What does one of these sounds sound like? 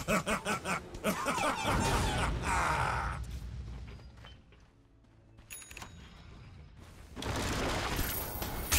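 Fantasy battle sound effects clash and crackle.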